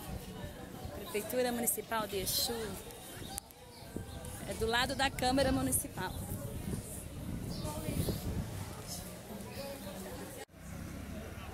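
A woman talks close to a microphone, with animation.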